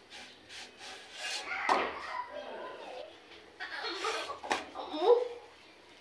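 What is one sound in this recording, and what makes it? Fingers flip a flatbread with a soft scrape.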